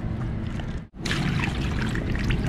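Water splashes as it is poured over fish.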